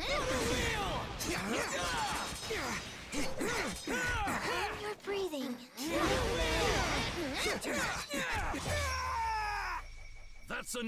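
Water splashes and roars in a sweeping sword strike.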